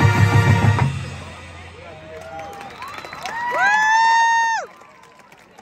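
A marching band plays loud, held brass notes outdoors.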